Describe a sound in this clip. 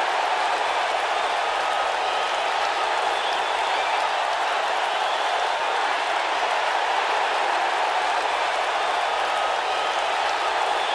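A large arena crowd cheers and roars steadily.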